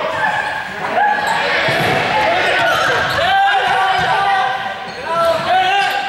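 Balls bounce on a hard floor.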